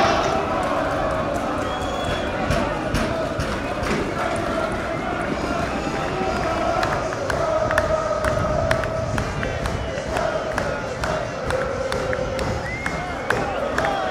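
Fans clap their hands.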